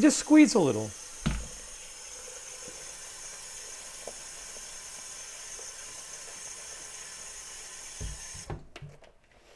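Water runs steadily from a tap.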